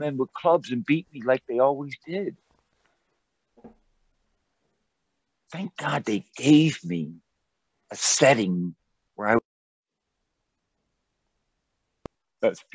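An elderly man talks calmly and close up, with pauses.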